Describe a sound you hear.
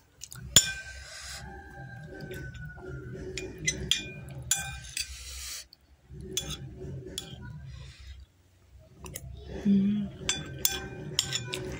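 A metal spoon scrapes and taps against a ceramic plate.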